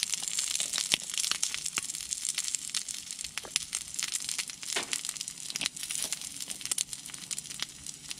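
A pepper grinder crunches as it is twisted.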